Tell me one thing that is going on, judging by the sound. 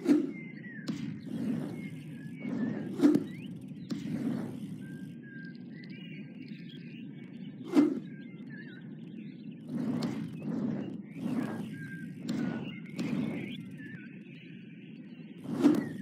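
Bicycle tyres roll and crunch over a rough dirt track.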